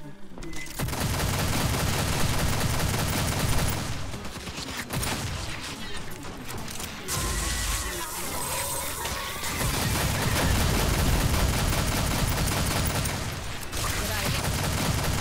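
A rapid-fire gun shoots in long bursts.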